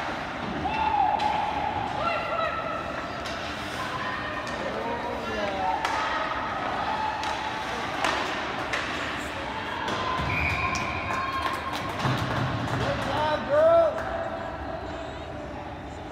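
Spectators shout and cheer in a large echoing rink.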